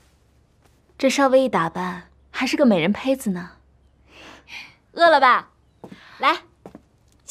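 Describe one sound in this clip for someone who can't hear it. A young woman speaks warmly and teasingly, close by.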